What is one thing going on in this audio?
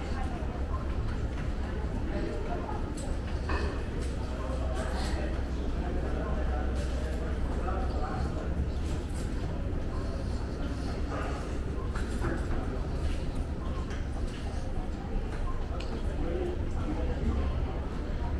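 Footsteps tap on a hard floor in an echoing passage.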